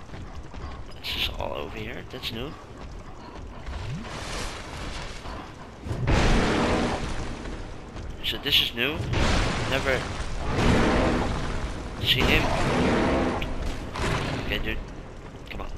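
A sword swings and clashes in combat.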